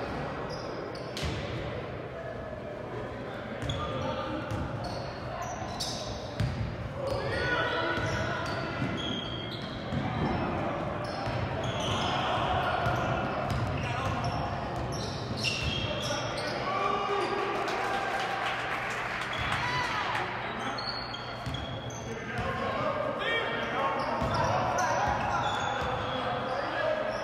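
Sneakers squeak sharply on a hardwood court in a large echoing gym.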